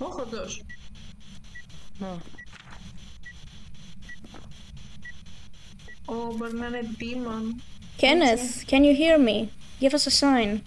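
A young woman speaks into a microphone.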